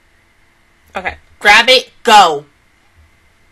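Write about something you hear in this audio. A young woman exclaims loudly into a close microphone.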